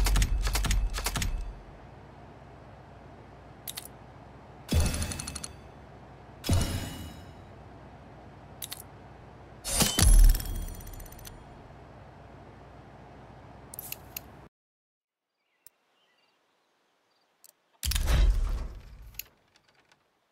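Electronic game interface sounds whoosh and chime in short bursts.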